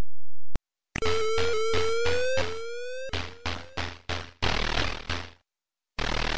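Electronic game music plays with quick rising beeps.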